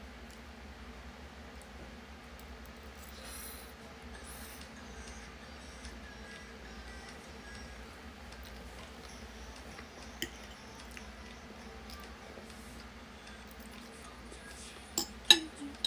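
Chopsticks clink against a plate.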